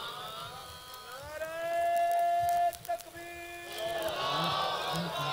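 A man chants in long, drawn-out notes through a loudspeaker.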